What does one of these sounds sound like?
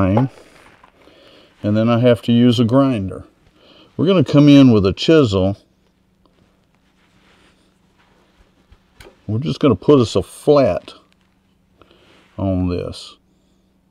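A man talks calmly into a microphone, explaining.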